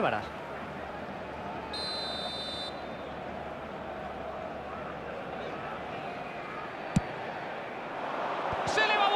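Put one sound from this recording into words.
A large stadium crowd roars steadily and swells louder near the end.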